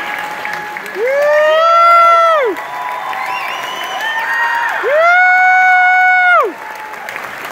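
A band plays a loud sustained chord together in a large echoing hall.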